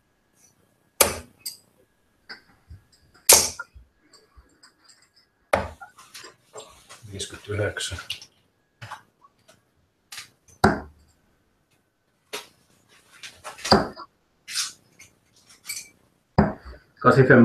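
Darts thud sharply into a dartboard, one after another.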